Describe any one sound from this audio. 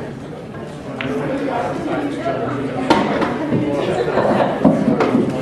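Pool balls knock together with a sharp clack.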